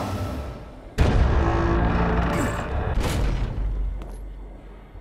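A heavy metal mechanism clanks and rumbles.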